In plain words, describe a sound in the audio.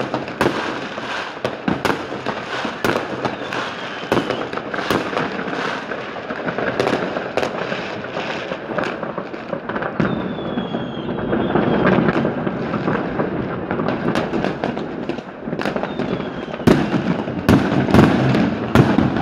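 Fireworks bang and crackle all around, near and far.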